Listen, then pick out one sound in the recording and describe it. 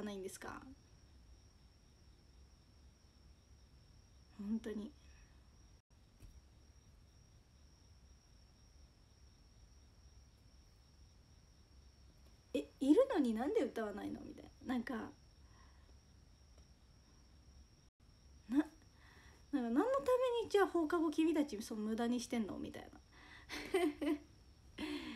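A young woman speaks casually and close to a microphone, with pauses.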